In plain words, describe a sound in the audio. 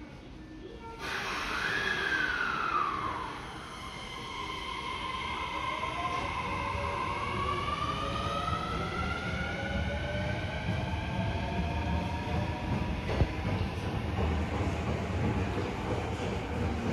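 An electric train pulls away with a whining motor that rises in pitch.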